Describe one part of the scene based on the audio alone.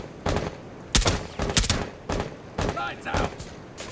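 A rifle fires several sharp shots in quick succession.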